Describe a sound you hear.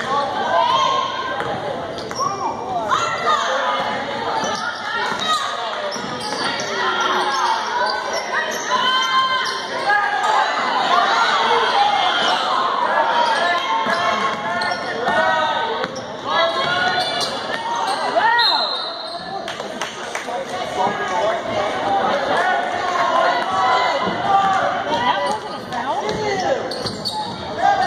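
A crowd of spectators chatters and calls out nearby in a large echoing gym.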